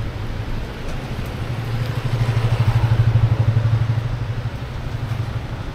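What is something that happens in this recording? A motorbike approaches and passes close by, its engine swelling and fading.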